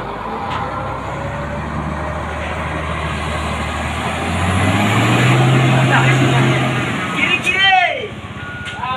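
A heavy truck engine roars and strains under load.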